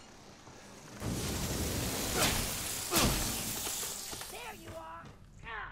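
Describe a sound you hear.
A fire burns with a loud roar and crackle.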